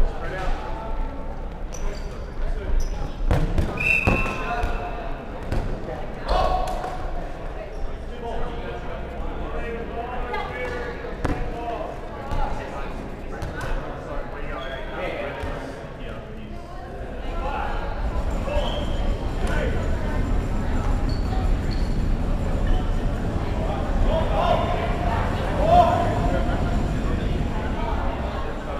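Players shout and call out across a large echoing hall.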